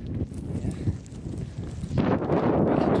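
Footsteps crunch on dry gravelly ground.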